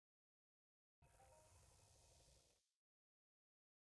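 A magic spell whooshes and shimmers in short bursts.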